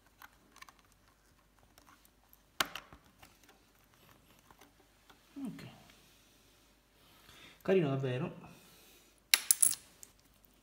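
Plastic toy bricks click and clatter as hands press them together.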